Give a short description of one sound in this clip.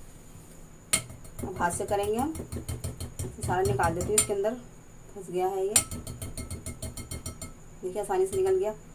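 A whisk scrapes and taps against a glass bowl.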